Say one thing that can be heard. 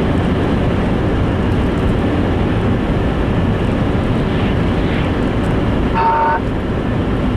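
Tyres rumble and hiss on a wet road.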